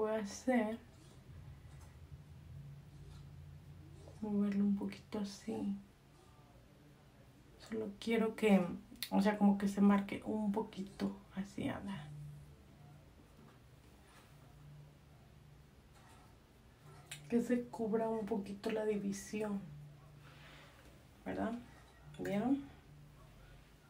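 A young woman talks calmly, close to the microphone.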